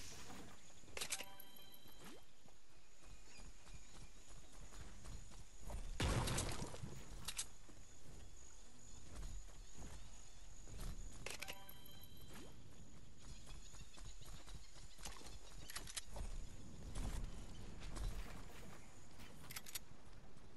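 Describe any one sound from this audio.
Building pieces snap into place with sharp clicks.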